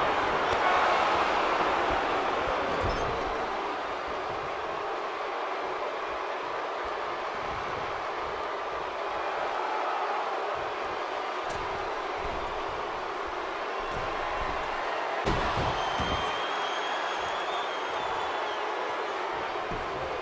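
A large crowd cheers and murmurs steadily in a big arena.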